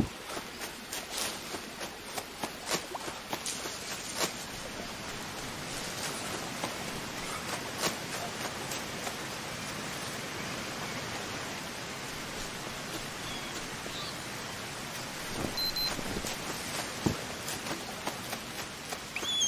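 Footsteps crunch on the forest floor.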